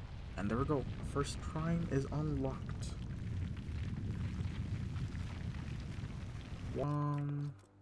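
A heavy stone pillar rumbles as it rises out of the ground.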